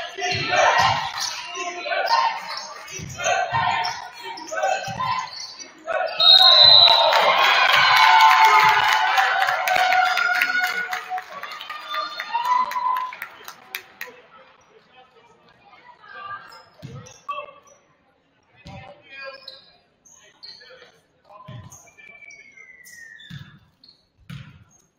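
A basketball bounces with dull thumps on a wooden court in an echoing gym.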